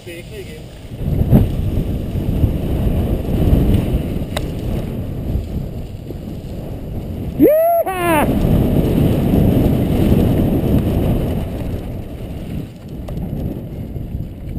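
Wind buffets loudly, rising as the bike speeds downhill.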